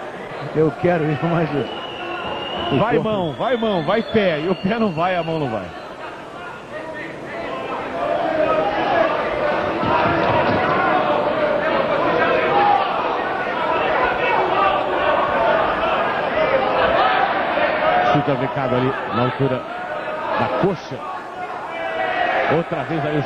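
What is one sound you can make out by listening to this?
A large crowd cheers and roars in a big echoing hall.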